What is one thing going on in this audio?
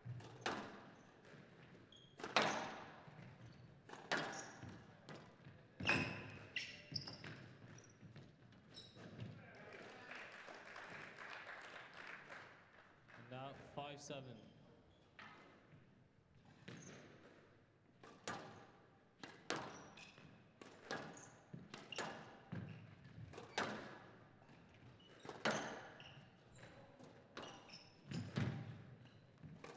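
A squash ball smacks hard against the walls in a quick rally, echoing in a large hall.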